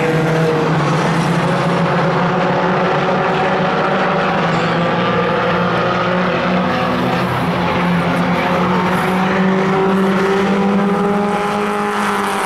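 Race car engines roar loudly around a track, revving and droning throughout.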